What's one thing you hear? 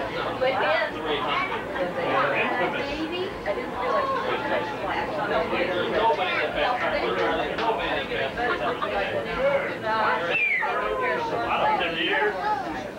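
Several women and men talk and chatter nearby.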